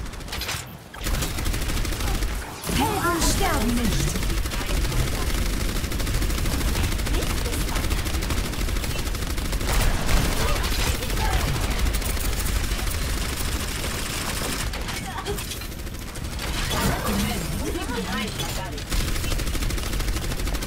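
A weapon fires rapid bursts of energy shots.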